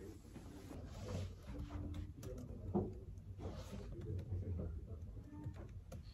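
Keys clatter softly on a laptop keyboard.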